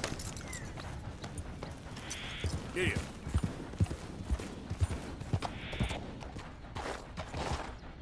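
Horse hooves thud and clop on rocky ground.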